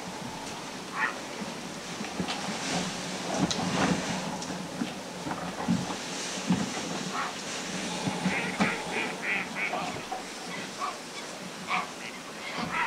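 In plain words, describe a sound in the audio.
A flock of birds calls overhead in short bursts.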